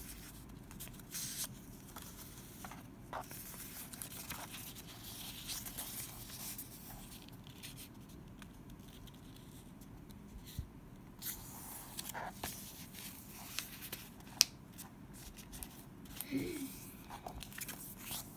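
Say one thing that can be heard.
Hands fold and crease a sheet of paper, with crackling and rustling.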